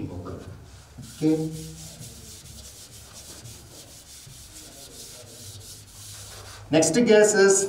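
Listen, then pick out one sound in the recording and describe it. A chalkboard eraser wipes across a board.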